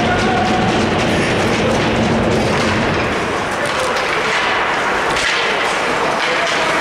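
Hockey sticks clack against the puck and ice.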